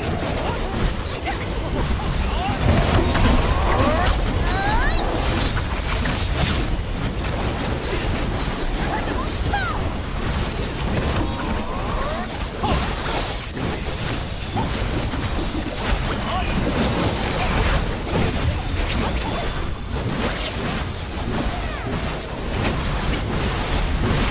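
Spell effects crackle and boom in a busy fight.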